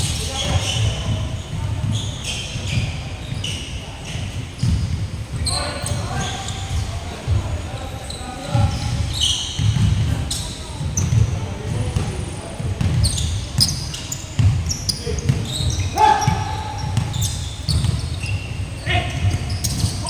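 Sneakers squeak sharply on the court floor.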